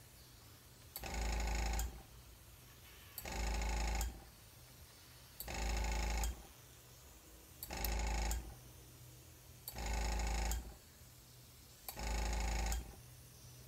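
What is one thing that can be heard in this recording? A small power tool whirs in short bursts, over and over at an even pace.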